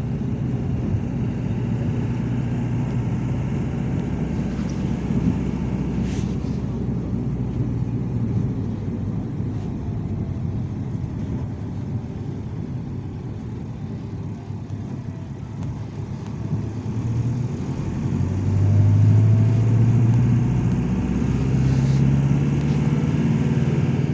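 Tyres and engine rumble low from inside a moving car.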